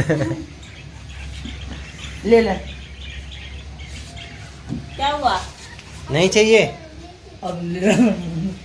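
A young child speaks and calls out in short bursts close by.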